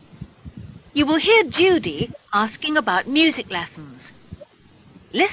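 A young man speaks through an online call.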